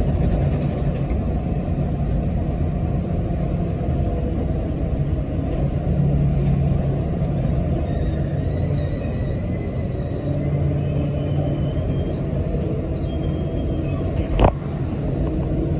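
A bus engine rumbles low and steady while the bus drives.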